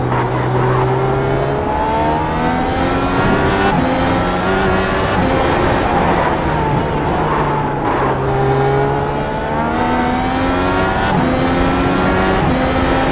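A racing car engine roars, rising in pitch as it speeds up and dropping as it slows for corners.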